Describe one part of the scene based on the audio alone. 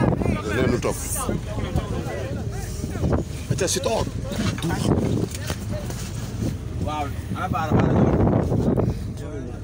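A crowd of men shout and talk over each other close by.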